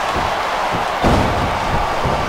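A body slams onto a wrestling ring mat.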